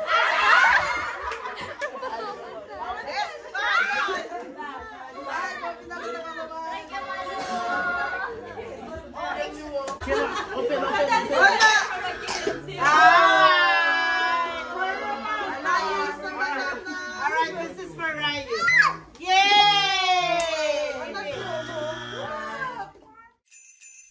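Women and children shout and cheer excitedly close by.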